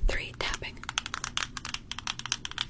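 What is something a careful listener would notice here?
Stiff paper crinkles and rustles close to a microphone.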